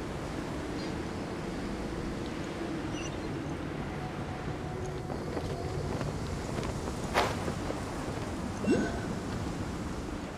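Wind rushes steadily past during a long glide.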